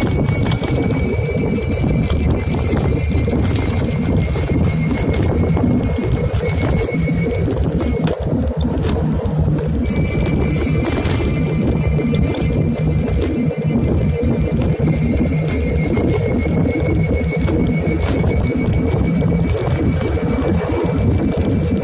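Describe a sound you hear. A motor hums steadily as a scooter rides along a road.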